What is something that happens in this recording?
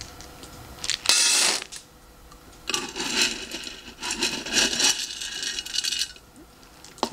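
Dry kibble pours and patters into a metal bowl.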